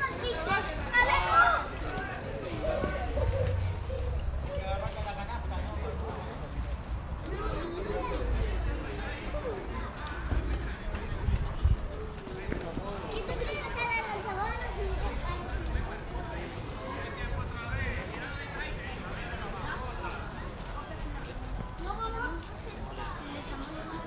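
Young men talk and call out at a distance outdoors.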